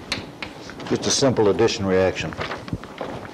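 An elderly man speaks briefly.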